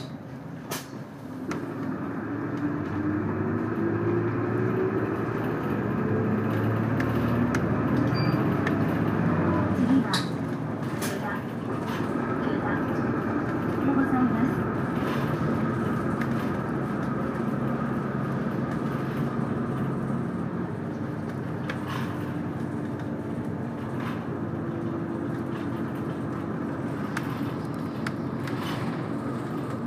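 A vehicle hums and rumbles steadily as it moves along.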